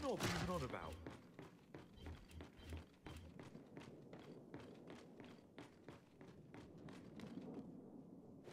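Heavy boots thud steadily on metal floors.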